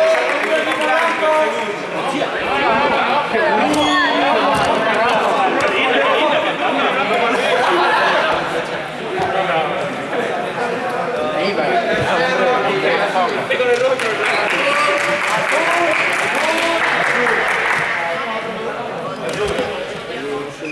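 Many young people chatter and call out at once in a large echoing hall.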